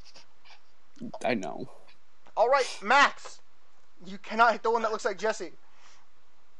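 A young man speaks casually and close to a microphone, in short bursts.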